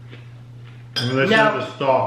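A man speaks casually, close by.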